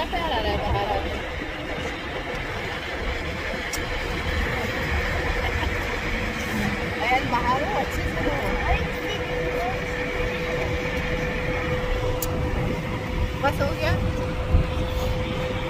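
A small child speaks softly close by.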